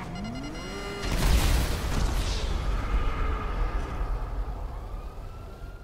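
A loud crash booms and rumbles.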